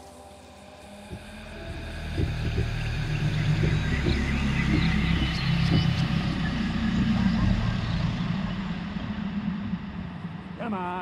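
A deep, rumbling roar swells and slowly fades.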